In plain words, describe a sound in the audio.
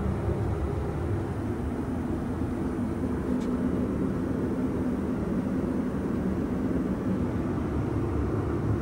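A steady, low droning hum of an airliner's cabin in flight fills the air.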